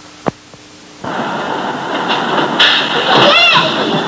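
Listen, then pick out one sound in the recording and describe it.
A woman shouts loudly.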